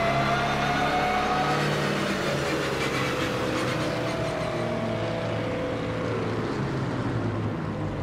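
A racing car engine hums steadily at low speed, heard from inside the car.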